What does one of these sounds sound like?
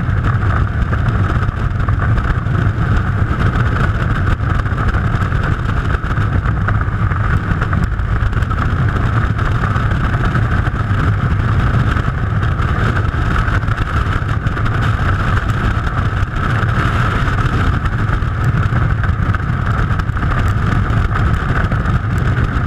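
Strong wind roars loudly and steadily in freefall.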